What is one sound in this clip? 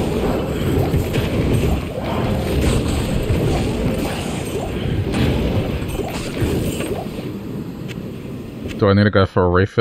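Spells crackle and blows thud in a fierce fight.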